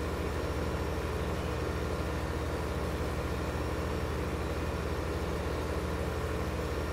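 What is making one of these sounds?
A seed drill rattles over soil.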